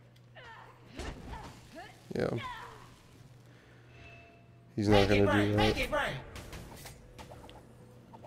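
Magic blasts whoosh and crackle in a fast fight.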